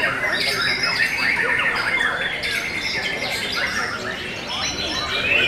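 A bird sings loud, rapid, chirping trills close by.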